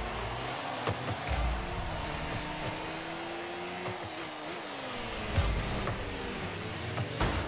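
A game car's engine hums steadily.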